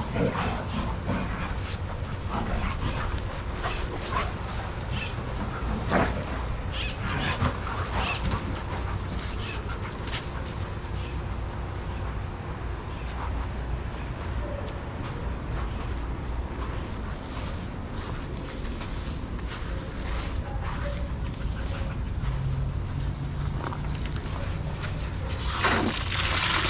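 Dogs run and scuffle on sandy ground.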